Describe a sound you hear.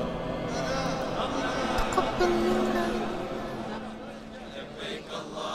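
A large crowd prays aloud in a murmur.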